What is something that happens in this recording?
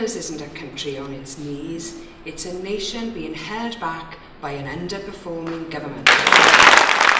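A woman speaks with emphasis through a microphone.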